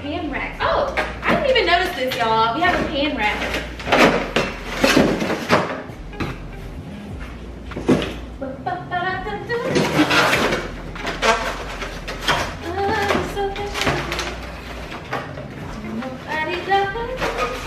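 Cardboard rustles and knocks as a box is handled.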